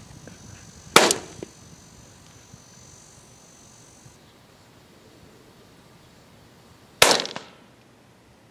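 A rifle shot cracks loudly and echoes across open ground.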